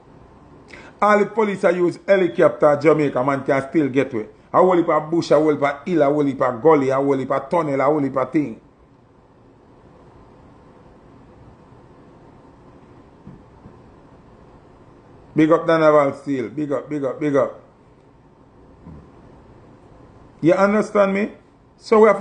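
A man speaks casually and with animation close to a phone microphone.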